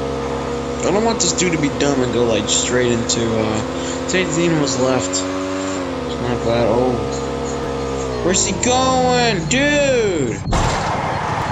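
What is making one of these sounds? A motorbike engine revs and drones.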